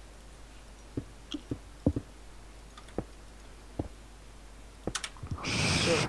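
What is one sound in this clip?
Stone blocks knock softly as they are set down one after another.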